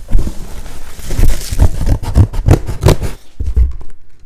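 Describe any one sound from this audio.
A cardboard box flap scrapes and thumps.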